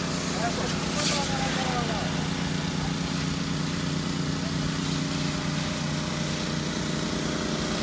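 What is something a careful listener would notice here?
A jet of water sprays hard against a car.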